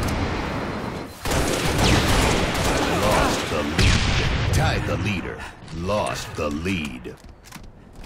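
Loud gunfire and blasts roar in a video game battle.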